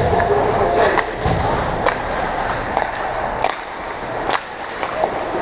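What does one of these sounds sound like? Skates scrape and carve across the ice in a large echoing rink.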